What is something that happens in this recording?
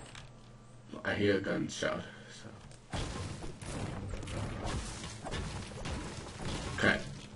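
A pickaxe strikes a wall with sharp, crackling hits.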